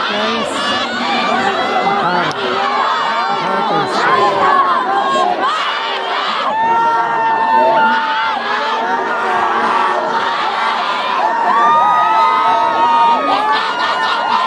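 A large outdoor crowd of young men chatters and shouts.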